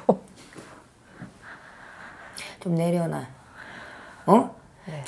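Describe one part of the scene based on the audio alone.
A young woman speaks calmly and close to a microphone, in short phrases.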